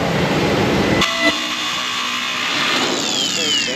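An angle grinder whines as it cuts metal.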